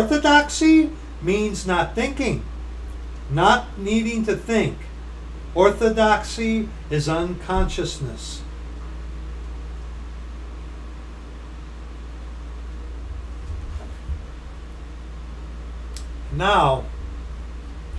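A middle-aged man speaks calmly and close to the microphone, with pauses.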